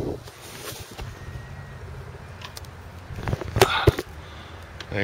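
Fabric rustles and bumps against the microphone.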